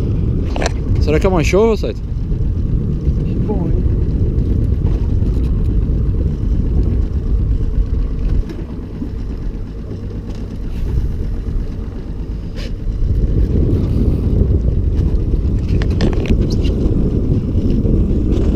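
Wind blows hard across the open water.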